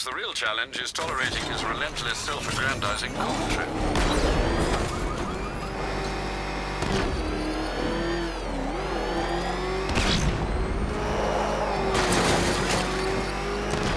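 A powerful car engine roars and revs as the car speeds along.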